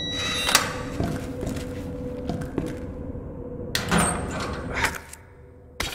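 A metal locker door creaks open.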